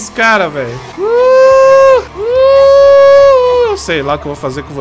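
A young man shouts long, drawn-out cries into a microphone.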